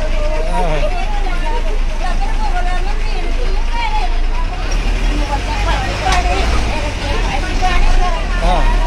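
An elderly woman sings loudly and with animation close by.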